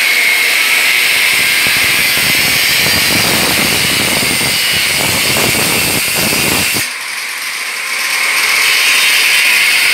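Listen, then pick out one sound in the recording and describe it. An angle grinder whines loudly and grinds through metal.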